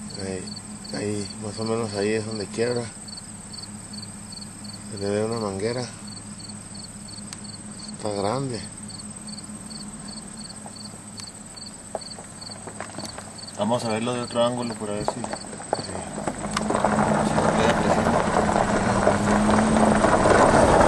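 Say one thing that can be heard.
Water sprays from a large irrigation sprinkler far off across a field.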